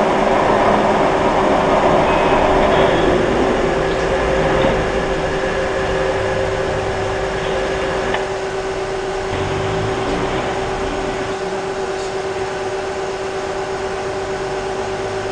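A machine hums steadily close by.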